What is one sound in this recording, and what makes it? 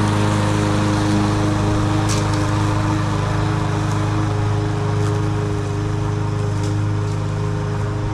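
A petrol lawn mower engine drones steadily outdoors.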